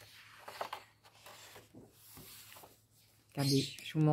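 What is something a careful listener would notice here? A page of a paper book is turned with a soft rustle.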